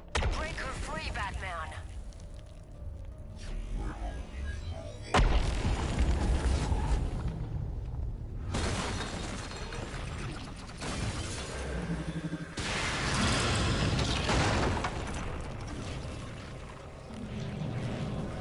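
Game sound effects whoosh and rumble loudly.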